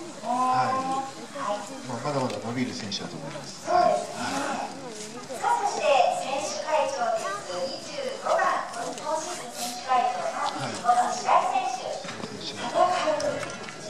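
A woman speaks through a microphone and loudspeaker.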